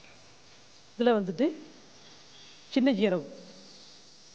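A man speaks briefly through a microphone, in short animated phrases.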